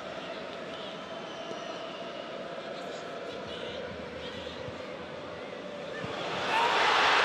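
A large stadium crowd chants and murmurs.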